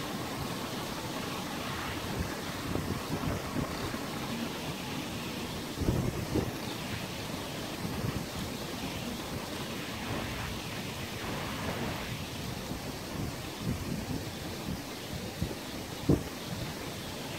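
Wind blows steadily outdoors, rumbling and gusting.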